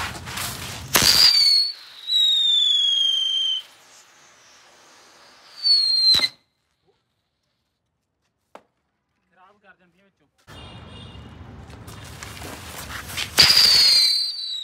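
A firework bursts with a loud bang.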